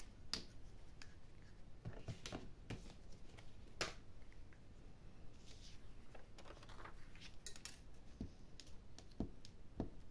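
A glue bottle clicks and squeaks as it is used.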